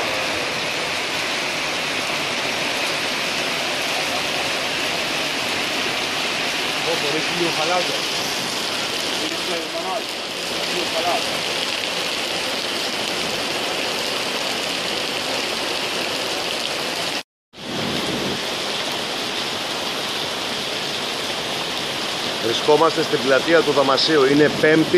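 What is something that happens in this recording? Heavy rain pours down steadily and splashes on wet pavement outdoors.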